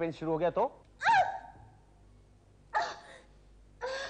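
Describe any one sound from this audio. A woman cries out in distress.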